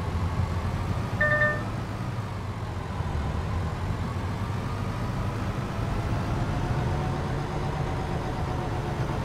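A truck engine rumbles steadily at low speed.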